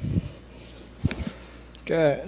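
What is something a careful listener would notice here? A patient's joint cracks with a short pop.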